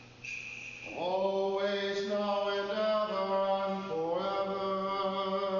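A man chants slowly in a large echoing hall.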